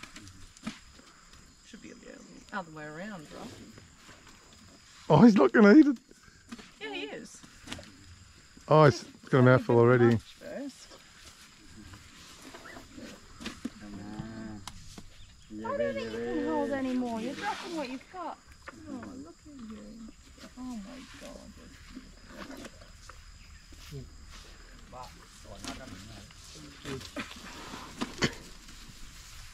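An elephant munches on grass.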